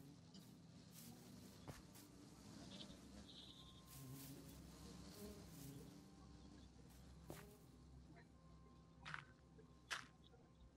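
Bees buzz steadily close by.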